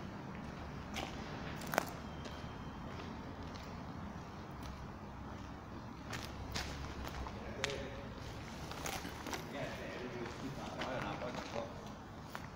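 Footsteps crunch on gritty ground.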